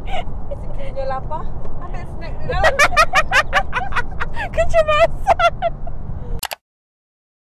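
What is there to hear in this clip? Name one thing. A young woman talks and laughs excitedly close by.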